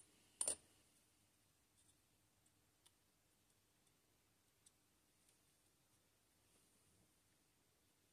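Small plastic and metal parts click softly as fingers handle a model.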